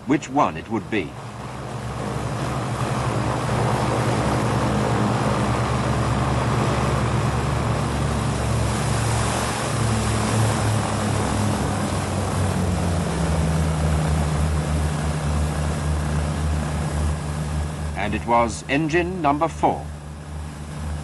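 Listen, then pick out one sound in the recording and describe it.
A propeller aircraft engine drones loudly and steadily.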